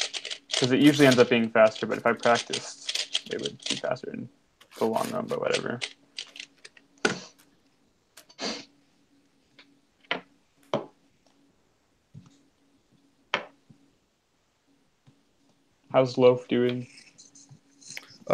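Plastic puzzle cube layers click and clack as they are turned by hand.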